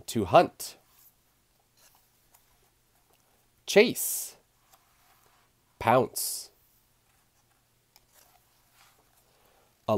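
Paper pages of a book turn with a soft rustle.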